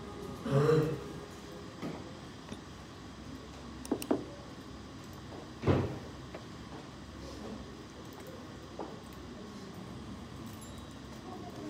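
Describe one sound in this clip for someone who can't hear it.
Keys click faintly on a computer keyboard nearby.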